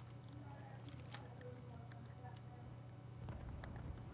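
A gun clicks and rattles as it is handled.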